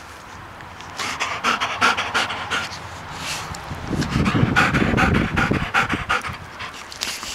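Hands rub and rustle through a dog's thick fur close by.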